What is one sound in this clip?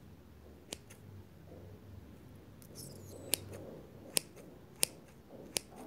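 Scissors snip sharply close by, a few times.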